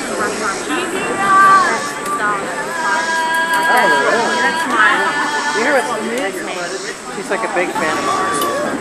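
Several acoustic guitars strum together outdoors.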